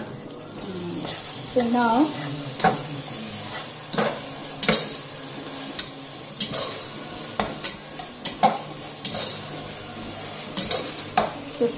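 A metal spoon scrapes and clinks against a cooking pot.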